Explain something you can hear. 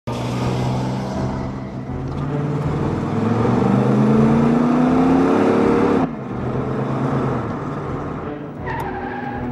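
A car engine hums and revs up, rising in pitch.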